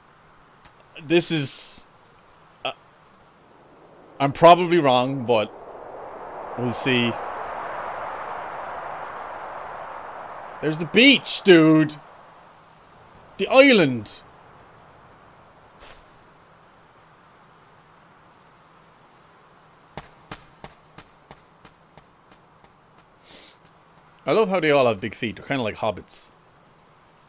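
A young man talks quietly into a headset microphone.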